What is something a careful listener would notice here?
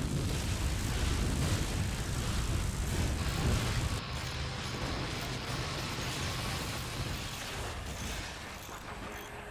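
Laser beams hum and sizzle.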